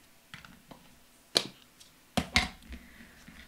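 An ink pad lid clicks open and shut.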